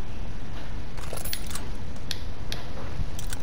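A weapon clicks and rattles as it is swapped.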